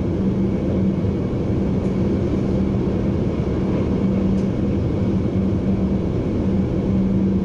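A train's motor hums with a steady low drone.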